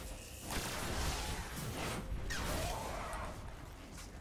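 Loud gunfire bursts in short volleys.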